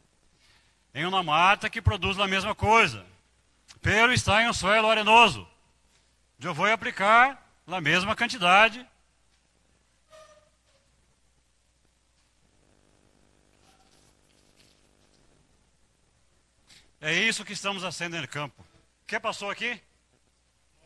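A man speaks with animation through a microphone and loudspeakers in a large hall.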